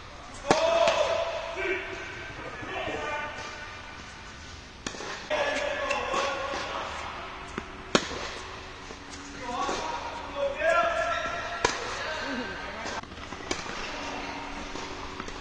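Tennis shoes squeak on a hard court.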